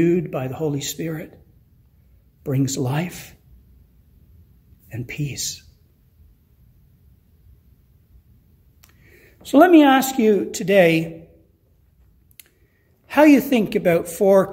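An older man speaks calmly and close to a microphone, in short phrases with pauses.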